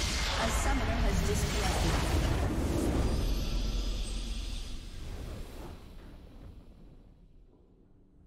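A huge explosion booms and rumbles, then slowly fades away.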